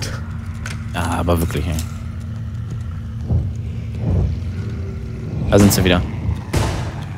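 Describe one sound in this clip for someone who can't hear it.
A heavy weapon swings and strikes with dull thuds.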